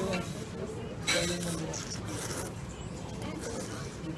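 A young man slurps noodles loudly.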